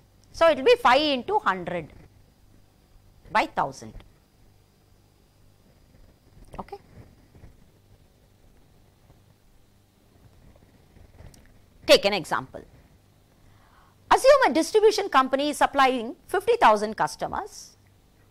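An older woman speaks calmly into a microphone, with pauses.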